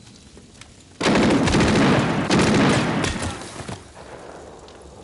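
A loud explosion booms close by, with rumbling blasts that fade away.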